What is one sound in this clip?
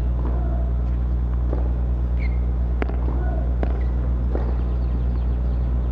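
A tennis ball is bounced on the ground before a serve.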